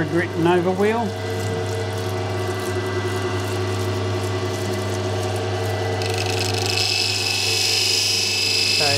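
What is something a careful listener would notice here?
A grinding wheel whirs steadily as a small piece is ground against it.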